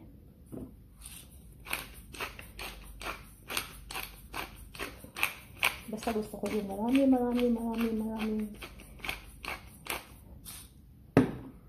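A pepper mill grinds with quick, rhythmic crunching turns.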